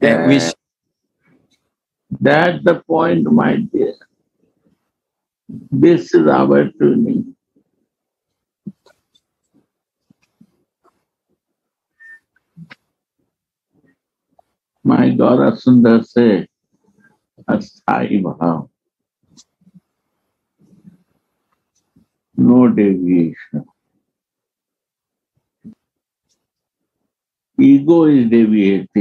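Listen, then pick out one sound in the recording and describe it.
An elderly man speaks calmly and slowly in short bursts with pauses, heard through an online call.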